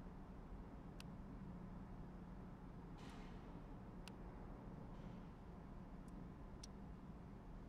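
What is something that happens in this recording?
Short interface clicks sound as menu tabs switch.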